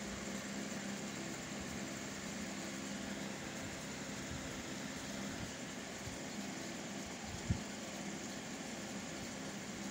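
A finger taps softly on a phone's touchscreen.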